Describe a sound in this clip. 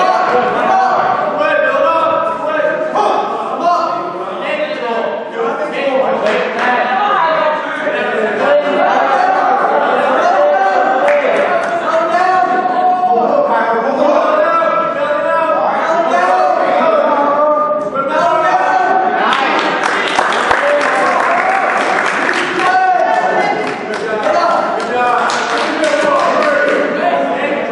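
A crowd of spectators shouts encouragement in a large echoing hall.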